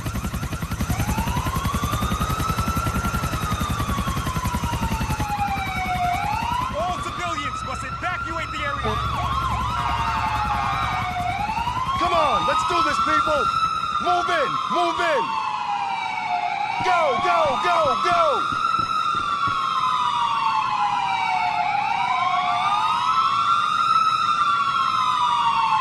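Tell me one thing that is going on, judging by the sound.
A siren wails up and down, over and over.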